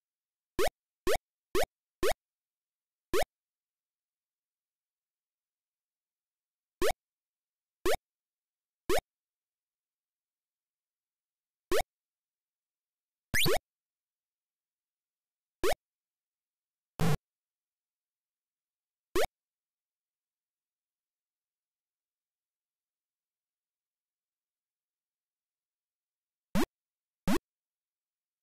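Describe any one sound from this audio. Short rising electronic bleeps from a retro video game sound now and then, with silence in between.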